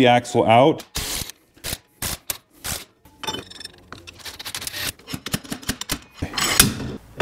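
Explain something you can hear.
Metal tools clink and clatter against metal.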